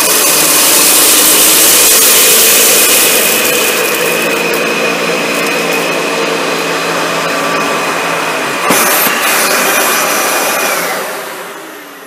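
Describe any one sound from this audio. A vacuum cleaner motor whines loudly as it sucks up debris from a carpet.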